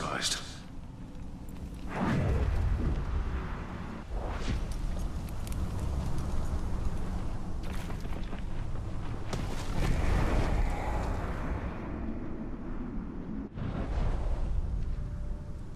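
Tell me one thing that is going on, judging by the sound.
Footsteps run quickly over rough stony ground.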